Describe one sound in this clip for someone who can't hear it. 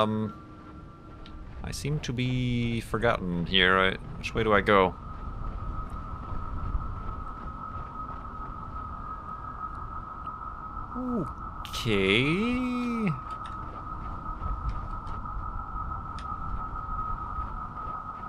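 Soft footsteps tread on grassy ground.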